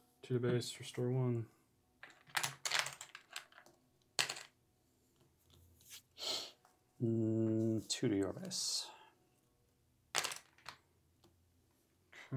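Cards tap softly onto a table.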